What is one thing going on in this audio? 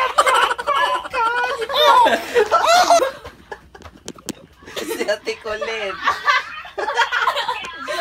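Young women laugh and talk excitedly close by.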